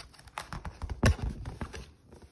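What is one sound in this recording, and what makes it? A dull thump knocks against a surface.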